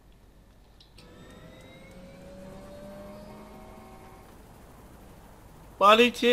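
A helicopter engine hums and whines nearby.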